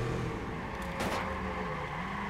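A car crashes into a street sign with a sharp bang.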